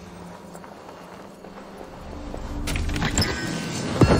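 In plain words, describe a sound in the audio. A wooden chest creaks open.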